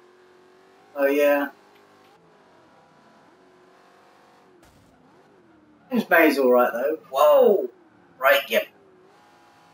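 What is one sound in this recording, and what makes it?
A young man speaks loudly in short bursts, close to a microphone.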